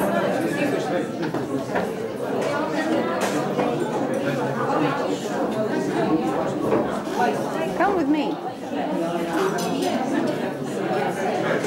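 A crowd of men and women chat and laugh at once, filling a room with lively chatter.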